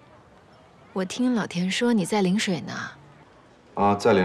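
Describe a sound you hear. A young woman speaks calmly on a phone.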